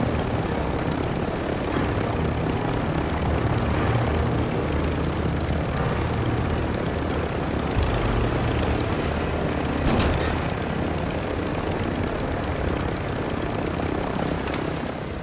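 A helicopter's rotor thumps and its engine roars steadily up close.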